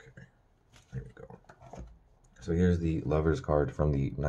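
Playing cards rustle and slide softly as they are handled.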